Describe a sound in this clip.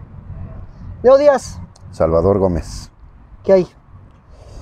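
A second middle-aged man answers in a relaxed voice up close.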